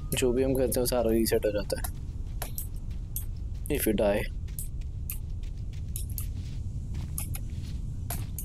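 Footsteps run quickly through grass and undergrowth.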